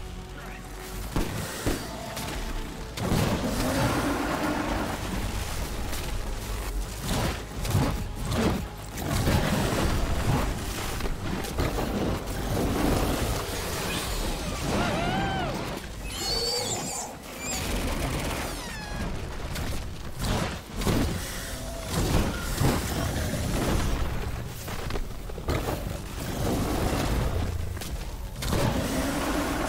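Electric blasts crackle and boom again and again.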